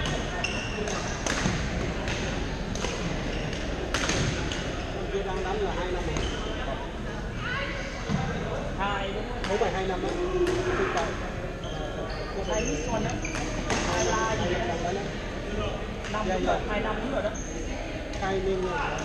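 Young men talk and call out across the hall.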